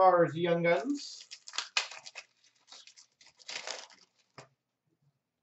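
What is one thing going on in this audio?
Trading cards rustle and slide as hands flip through them.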